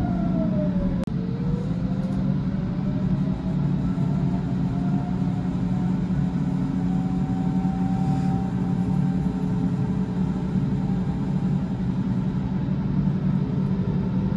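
A train rumbles steadily past close by.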